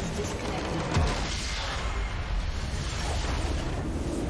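A large structure blows up with a deep rumbling blast.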